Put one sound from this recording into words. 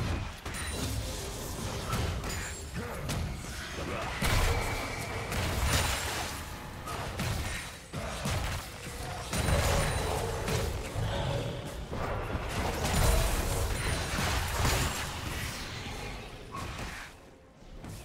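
Magic spells crackle and blast during a fast video game battle.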